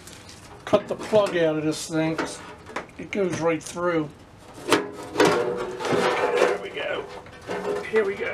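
A metal case rattles and clanks as a panel is pried open.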